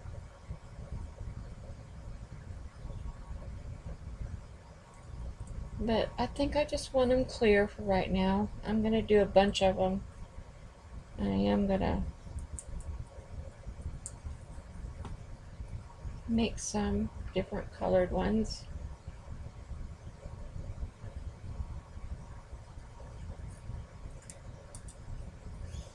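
Hands shift stiff paper cards on a table with soft rustles and taps.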